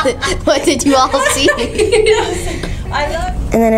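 A young girl speaks cheerfully close by.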